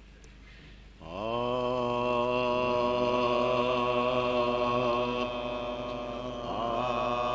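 A middle-aged man sings in long held notes through a microphone.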